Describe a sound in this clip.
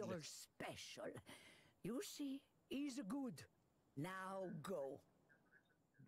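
An elderly woman speaks with animation.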